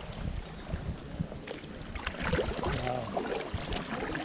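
A canoe paddle dips and splashes in calm water.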